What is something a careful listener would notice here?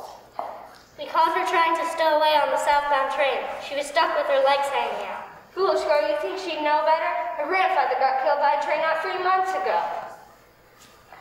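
A child sings clearly in an echoing hall.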